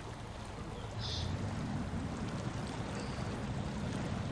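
Water splashes and churns around a truck wading through a river.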